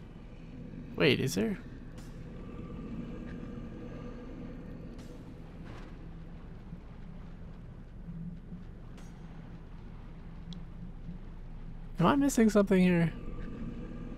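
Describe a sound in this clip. A huge creature lets out deep, sliding groans.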